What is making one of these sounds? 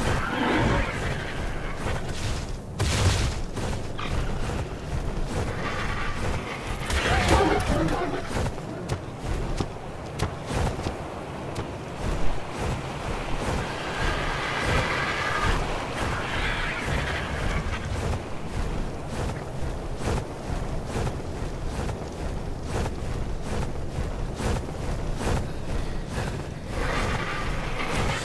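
Large wings flap with heavy whooshes.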